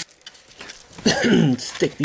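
A metal chain clinks and rattles.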